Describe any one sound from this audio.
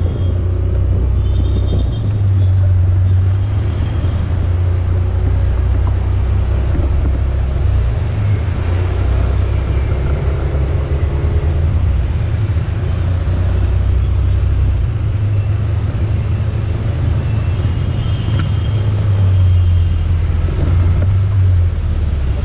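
Wind rumbles loudly outdoors.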